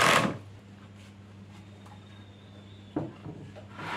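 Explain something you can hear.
A wooden box knocks down onto a table.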